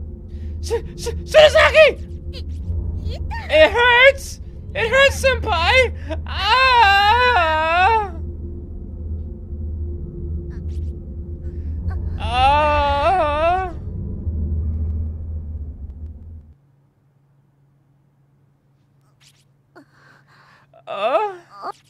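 A man talks and exclaims with animation into a close microphone.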